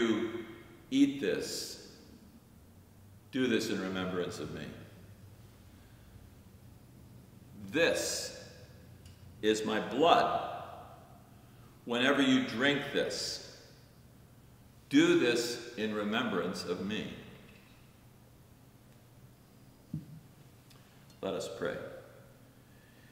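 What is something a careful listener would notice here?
An elderly man speaks slowly and calmly, with pauses, in a room with a slight echo.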